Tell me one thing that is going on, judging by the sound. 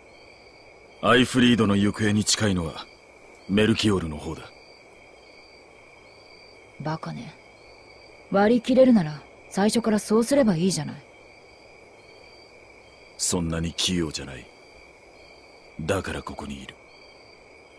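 A young man speaks calmly and firmly.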